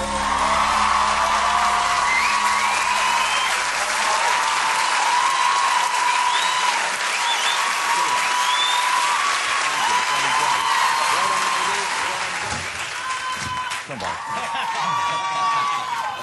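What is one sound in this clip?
Violins play along with the singing.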